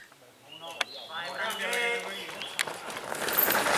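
Men shout encouragement nearby outdoors.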